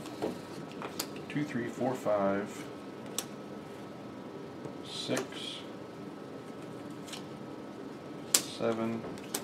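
Playing cards are placed and slapped onto a table.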